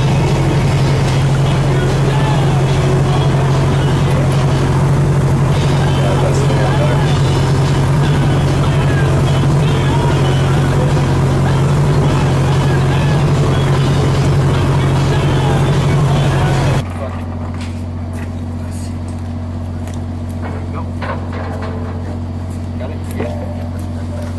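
A ship's engine hums low and steady on deck.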